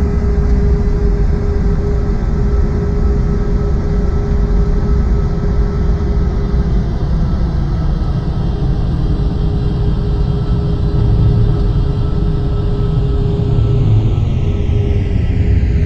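Jet engines hum steadily with a low rumble as an airliner taxis.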